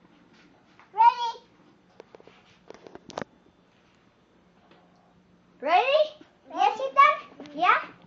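A small child squeals and laughs excitedly close by.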